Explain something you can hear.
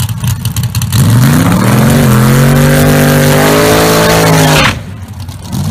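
A racing car engine revs up hard and roars.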